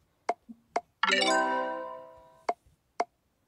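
A bright chime rings out when a tube is completed.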